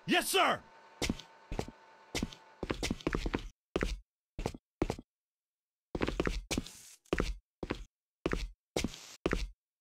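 Footsteps crunch steadily over hard ground.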